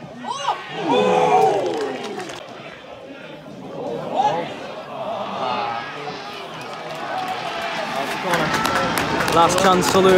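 A crowd of spectators shouts and chants outdoors.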